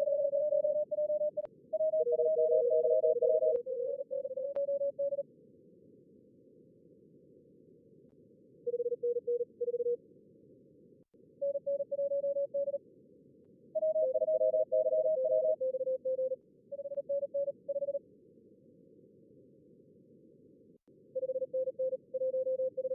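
A radio receiver hisses steadily.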